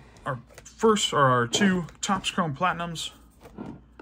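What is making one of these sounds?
Cardboard boxes bump and slide on a table.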